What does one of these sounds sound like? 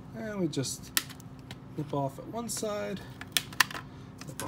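Metal pliers snip and click.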